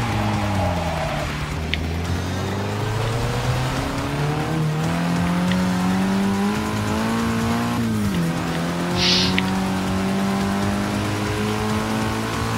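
Rain hisses steadily on the road.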